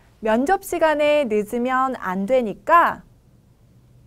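A woman speaks clearly and with expression into a close microphone.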